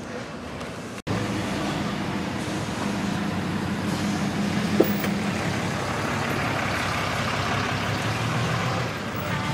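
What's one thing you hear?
A pickup truck's engine idles nearby with a steady low rumble.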